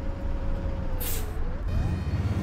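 Bus doors release a short burst of hissing air.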